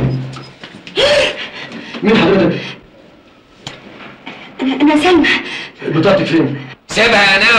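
A woman speaks with surprise nearby.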